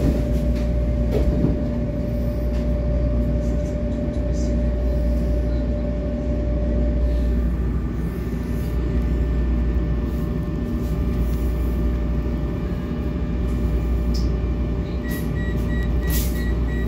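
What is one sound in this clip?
A subway train rumbles and hums steadily as it runs.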